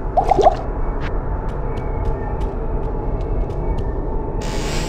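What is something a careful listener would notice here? Footsteps tap lightly on stone at an even pace.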